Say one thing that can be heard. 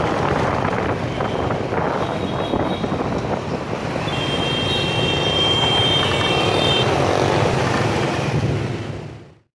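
Motorbike engines hum and buzz steadily in busy street traffic.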